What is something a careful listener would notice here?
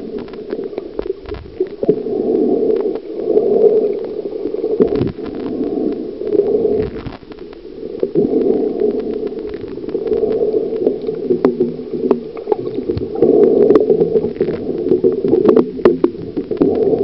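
Water sloshes and gurgles, heard muffled from underwater.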